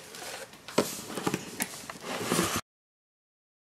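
Cardboard rustles and scrapes as hands open a box.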